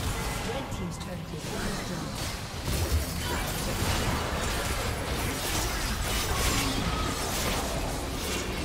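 Magic blasts and clashing effects crackle and boom in a busy game battle.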